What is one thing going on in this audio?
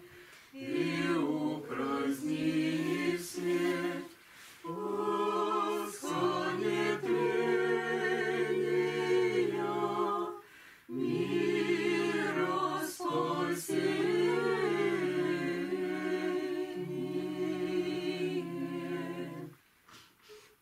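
A man chants along in a low voice.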